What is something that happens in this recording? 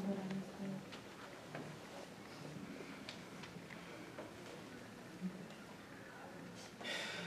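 A man speaks calmly, heard from across a room.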